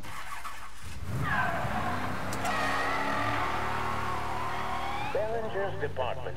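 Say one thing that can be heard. A car engine starts and runs.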